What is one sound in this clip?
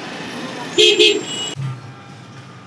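City traffic rumbles with car horns outdoors.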